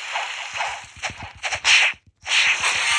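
A magical energy blast bursts with a crackling whoosh.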